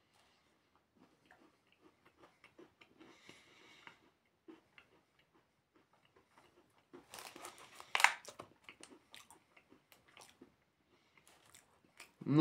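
A young man chews food with soft crunching.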